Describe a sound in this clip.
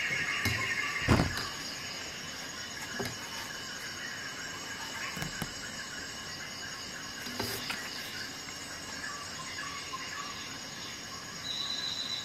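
Hands handle a plastic power adapter, with occasional soft knocks and rustles close by.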